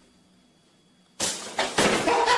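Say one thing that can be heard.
A toaster pops up with a sudden clack.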